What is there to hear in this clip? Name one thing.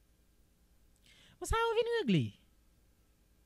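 A young man speaks close up into a microphone, with animation.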